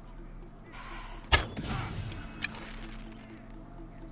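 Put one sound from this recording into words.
An arrow is loosed from a bow with a sharp snap.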